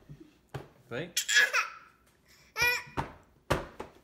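A toddler girl whines and fusses close by.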